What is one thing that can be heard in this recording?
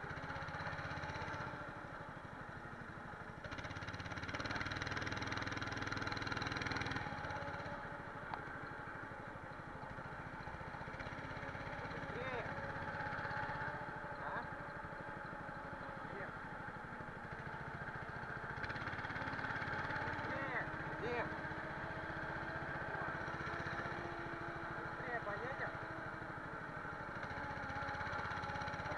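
A go-kart engine drones steadily, rising and falling as it speeds up and slows.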